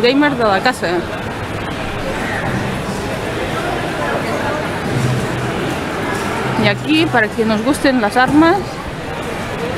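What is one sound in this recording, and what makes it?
A crowd murmurs and chatters in a busy, echoing space.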